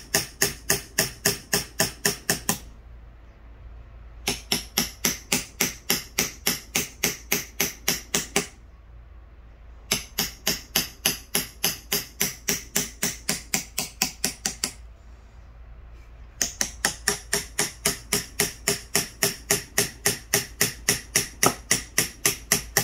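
A hammer taps a metal chisel in quick, steady blows, with short pauses now and then.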